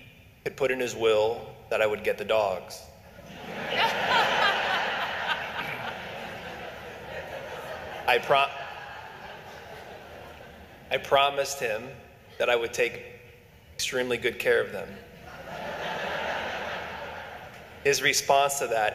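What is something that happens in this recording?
A young man speaks calmly into a microphone in an echoing hall.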